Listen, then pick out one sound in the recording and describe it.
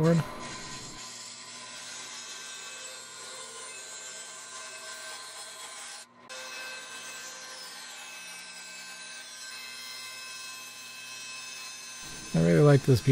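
A band saw hums steadily as it cuts through wood.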